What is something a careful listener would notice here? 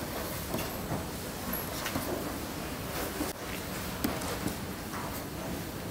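A pen taps and scratches on a board.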